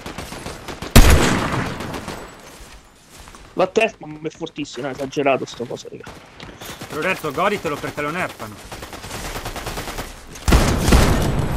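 A sniper rifle fires with a sharp crack.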